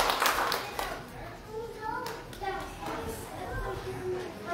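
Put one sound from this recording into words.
Children and adults murmur and chatter.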